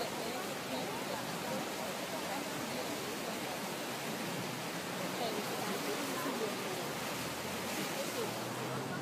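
Floodwater rushes loudly over a road.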